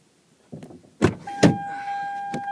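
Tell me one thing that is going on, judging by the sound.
A car door opens with a clunk.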